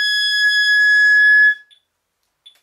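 A clarinet plays a single steady high note, then stops.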